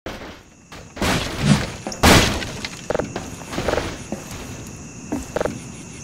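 An axe strikes a wooden crate with sharp knocks.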